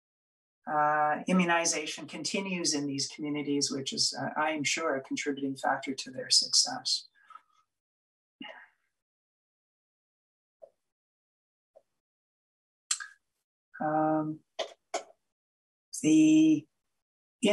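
A middle-aged man speaks calmly into a microphone, heard as if over an online call.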